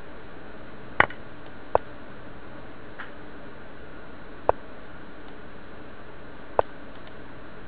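A short click sounds now and then as game pieces move.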